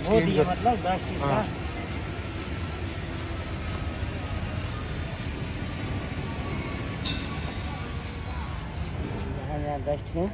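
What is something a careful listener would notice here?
A wire brush scrubs across a metal weld.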